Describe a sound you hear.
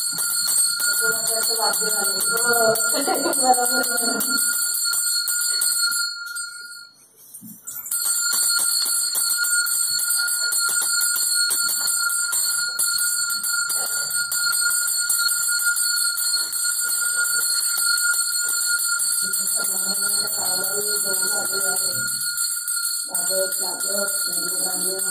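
Women chant together nearby.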